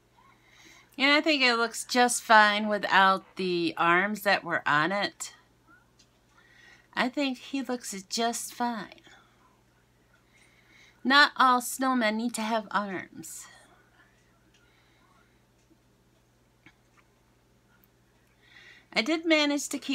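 A woman talks with animation, close to a microphone, pausing now and then.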